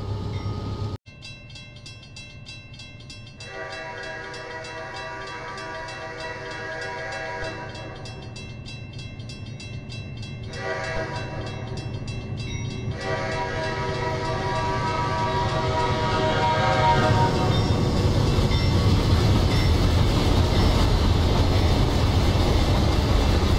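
A railroad crossing bell rings rapidly.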